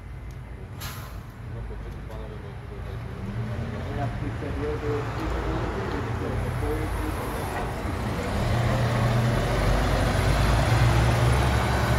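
A city bus engine idles and rumbles close by.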